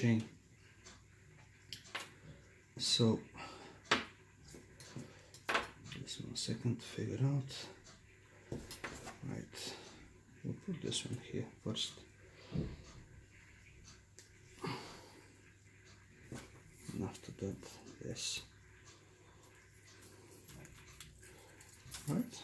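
Small metal rings and chains clink softly against each other.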